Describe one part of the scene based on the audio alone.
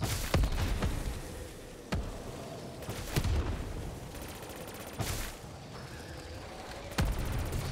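A shotgun fires loud blasts at intervals.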